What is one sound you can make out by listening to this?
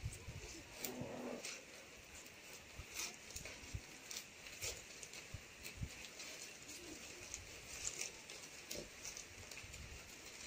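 Stiff palm leaves rustle and crackle as they are woven by hand.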